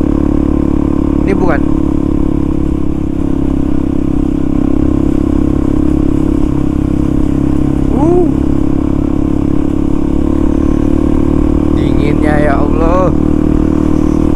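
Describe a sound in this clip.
A motorcycle engine drones steadily close by.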